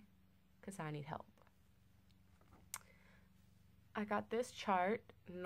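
A young woman talks to the listener calmly and close up.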